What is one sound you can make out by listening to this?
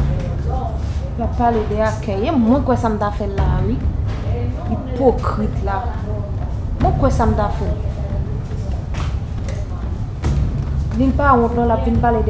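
A woman speaks emotionally close to a microphone.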